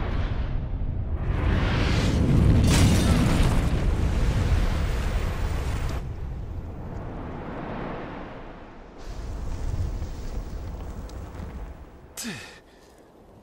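A deep, booming rumble of crashing stone swells and slowly fades.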